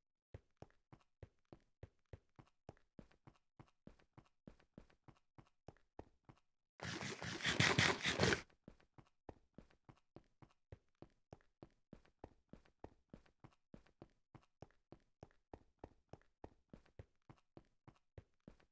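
Footsteps crunch steadily and quickly on rough stone.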